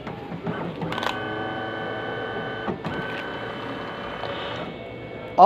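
A copier hums and whirs as it scans.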